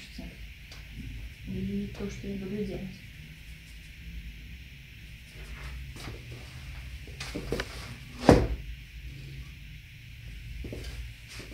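A paintbrush dabs and taps against a palette.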